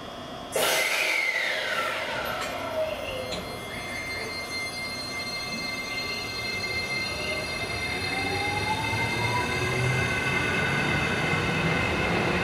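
A train rolls past close by, its wheels rumbling and clattering on the rails.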